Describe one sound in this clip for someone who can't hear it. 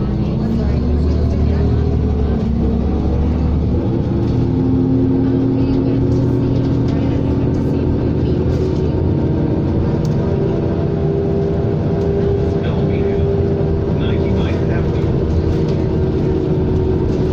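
A bus engine hums and whines steadily while driving.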